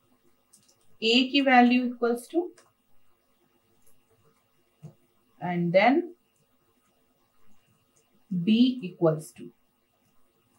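A young woman speaks calmly in short phrases.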